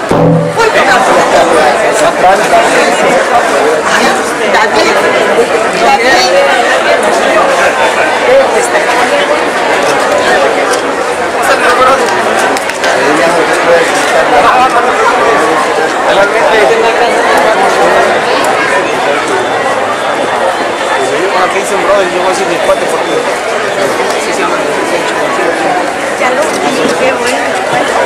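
A large crowd chatters loudly all around.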